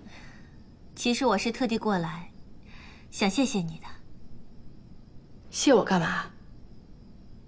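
A young woman speaks calmly and warmly.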